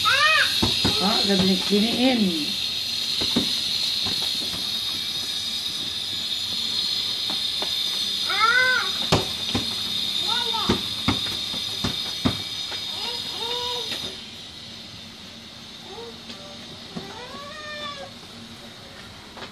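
Young children call out and squeal nearby.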